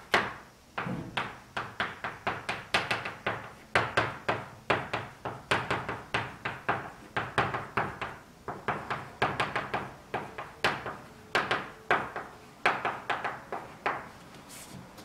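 Chalk taps and scrapes quickly on a blackboard.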